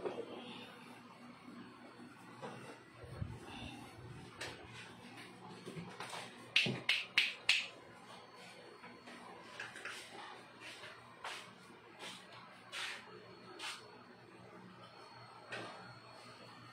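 Plastic plates knock and clatter against each other.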